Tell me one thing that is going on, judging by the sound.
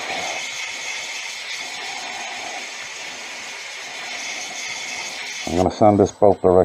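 Sandpaper hisses against a spinning workpiece.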